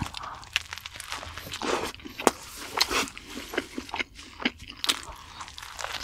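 A young man bites into a crunchy burger with a crisp crunch.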